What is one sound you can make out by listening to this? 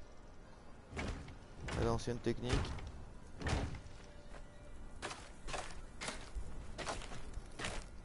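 Heavy wooden thuds sound as structures drop into place.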